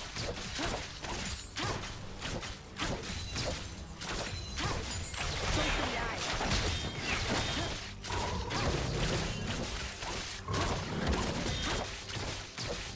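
Magic spells whoosh and crackle in a fast battle.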